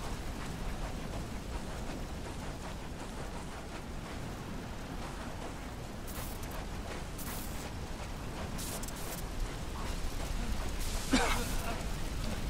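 Footsteps crunch quickly over sand and gravel.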